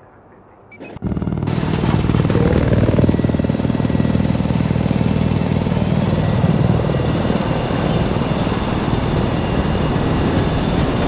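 An aircraft engine roars steadily.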